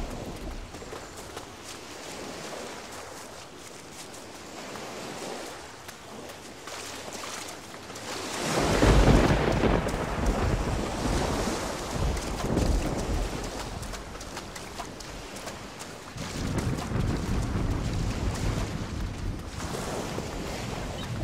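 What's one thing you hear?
Footsteps swish through tall grass and pad on sand.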